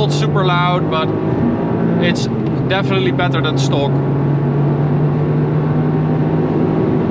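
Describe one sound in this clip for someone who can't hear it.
A car engine roars steadily as the car speeds up.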